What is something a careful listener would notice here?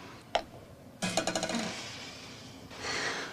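A champagne bottle hisses as its cork is eased out.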